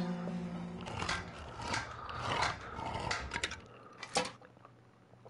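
A can opener clicks and grinds around a tin lid.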